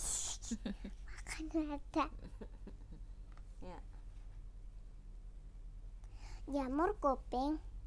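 A young girl reads aloud close to a clip-on microphone, in a high sing-song voice.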